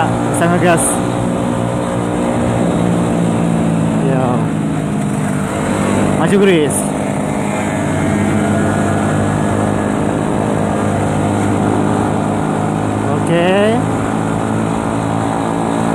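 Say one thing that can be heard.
A motorcycle engine hums steadily at close range while riding.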